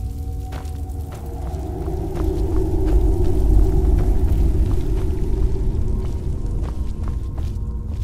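Footsteps scuff on stone in an echoing cave.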